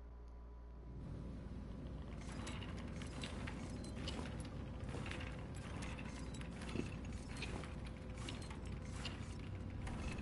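A wheelchair rolls over a metal floor.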